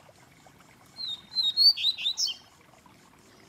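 A caged bird sings a short burst of loud, sharp whistling notes close by.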